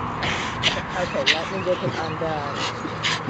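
A dog growls while tugging on a stick.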